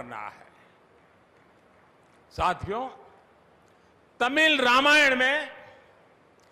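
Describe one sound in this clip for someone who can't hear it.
An elderly man speaks slowly and forcefully into a microphone, with long pauses.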